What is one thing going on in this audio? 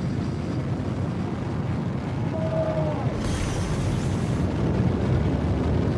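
A spaceship engine rumbles steadily.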